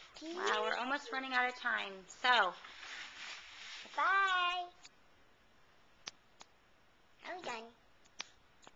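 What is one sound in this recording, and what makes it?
A young girl speaks brightly and playfully, close to the microphone.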